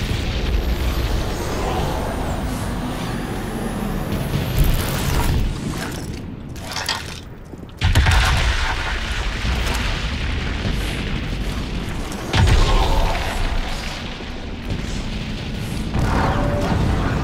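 Distant explosions rumble and boom.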